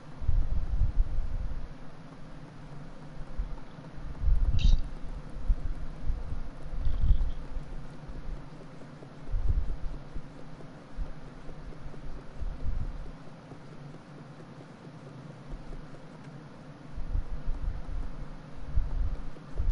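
Small footsteps patter on creaking wooden floorboards.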